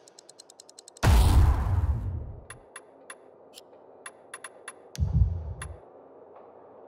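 A low whoosh swells as the menu changes.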